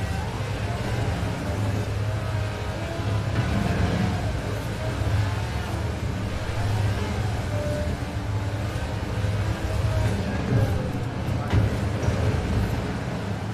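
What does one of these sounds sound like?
Tyres screech as a car drifts on a slippery road.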